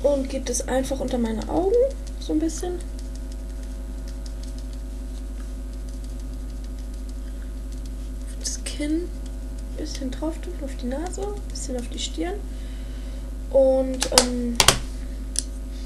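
A young woman talks calmly and close to a microphone.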